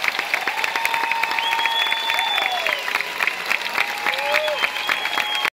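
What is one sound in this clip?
Audience members whistle and cheer.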